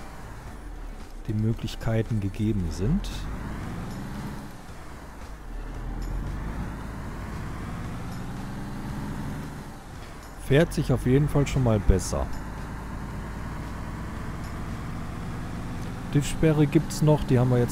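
A truck engine hums steadily as the truck drives along.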